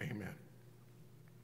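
An elderly man says a few words into a microphone.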